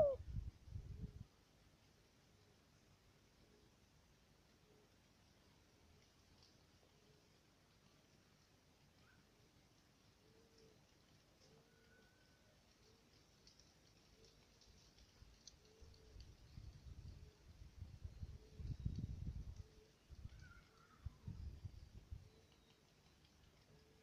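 A dove coos softly and repeatedly.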